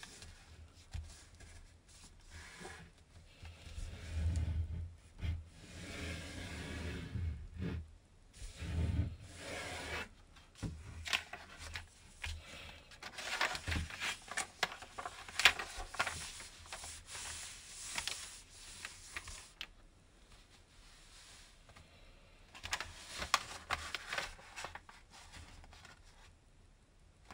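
Paper rustles and crinkles as hands fold and smooth it.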